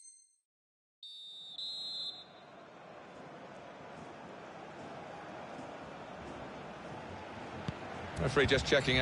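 A large stadium crowd murmurs and cheers, growing louder.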